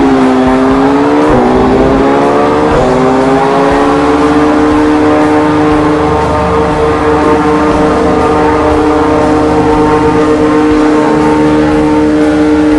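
A racing car engine whines loudly at high revs, rising and briefly dipping as gears shift, then holding steady.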